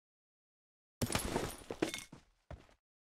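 A pack rustles as an item is picked up.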